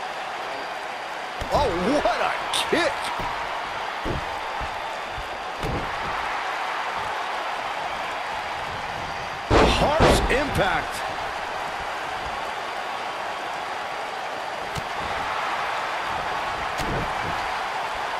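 Bodies thud heavily onto a wrestling ring.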